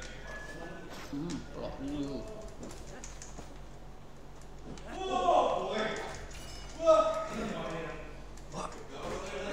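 A young man talks into a close microphone, with animation.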